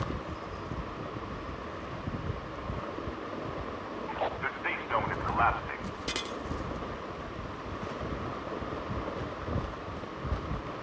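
Footsteps thud across a roof.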